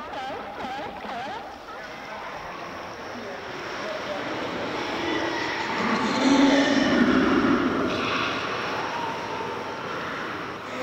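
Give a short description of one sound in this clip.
Water laps and echoes against rock walls.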